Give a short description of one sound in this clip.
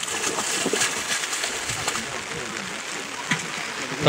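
Water splashes as a pot of fish is tipped into a pond.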